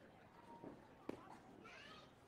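A bat sharply cracks against a ball.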